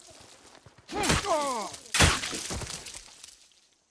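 A hatchet strikes a man with heavy thuds.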